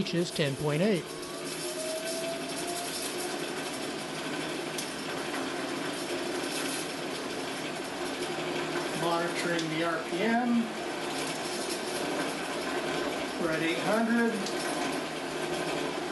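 A motor runs with a steady hum.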